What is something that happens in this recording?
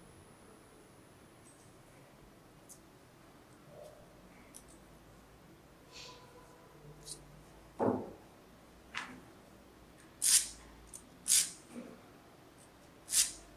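Pliers snip and click against a small piece of metal.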